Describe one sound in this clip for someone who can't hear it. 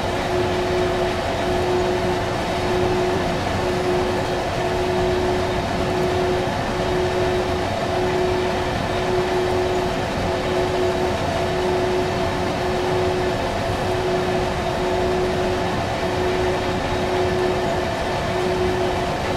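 An electric locomotive motor hums with a steady whine.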